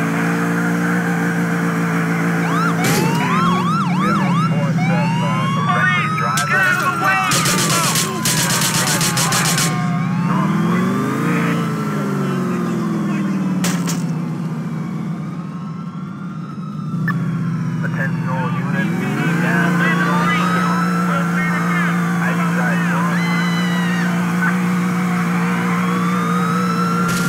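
A car engine roars and revs loudly.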